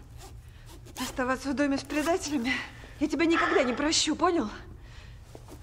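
A young woman speaks tensely nearby.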